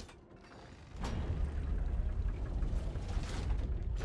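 Heavy stone machinery rumbles deeply as a large platform slides into place.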